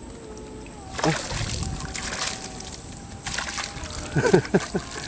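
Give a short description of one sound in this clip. A net splashes into water.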